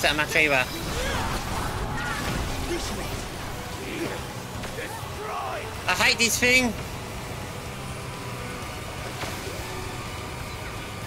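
Magic blasts whoosh and crackle in a video game.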